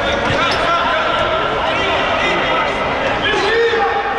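A futsal ball is kicked on a hard court in an echoing hall.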